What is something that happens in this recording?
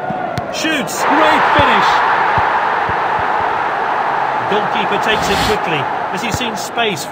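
A stadium crowd bursts into loud cheering.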